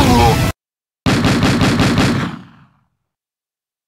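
Game music plays with a rapid beat and fades out.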